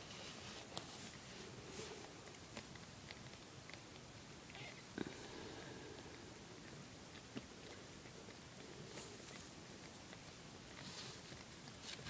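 A cat licks its kittens with soft wet sounds.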